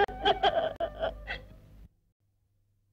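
A woman sobs and wails in distress close by.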